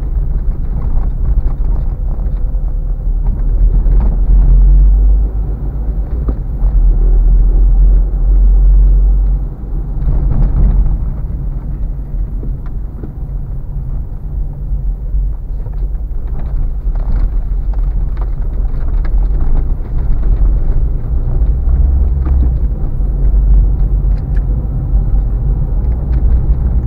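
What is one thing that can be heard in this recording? A car engine rumbles steadily from inside the car.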